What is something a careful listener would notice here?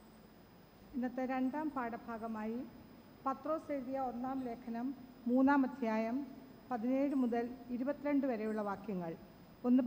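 A middle-aged woman speaks calmly into a microphone in an echoing room.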